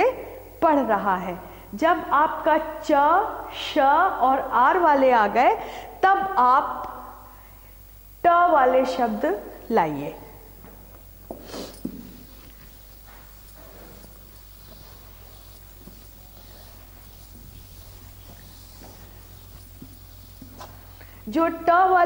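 A middle-aged woman speaks clearly and with animation into a clip-on microphone.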